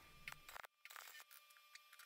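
A welding torch crackles and sizzles.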